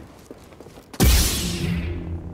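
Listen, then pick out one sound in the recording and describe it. A lightsaber ignites with a sharp burst.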